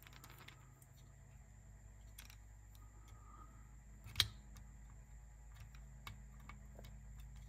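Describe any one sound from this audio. Small metal tools click and tap on a circuit board.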